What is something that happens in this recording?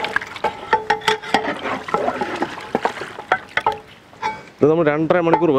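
A ladle stirs and knocks against a metal pot of thick stew.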